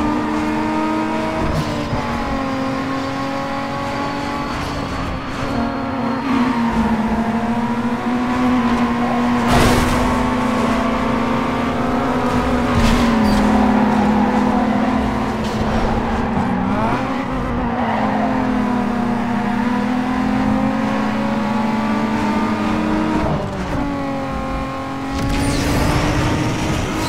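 A race car engine roars at high revs, rising and falling in pitch as it shifts gears.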